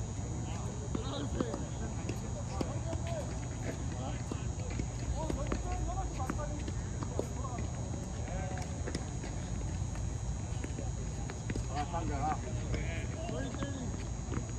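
Men talk casually at a distance outdoors.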